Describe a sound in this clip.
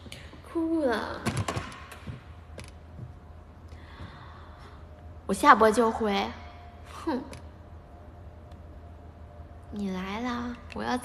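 A young woman speaks close to a microphone in short, lively bursts.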